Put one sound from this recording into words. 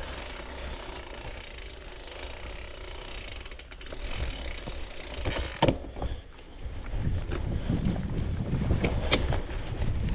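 Bicycle tyres crunch and rattle over a sandy gravel track.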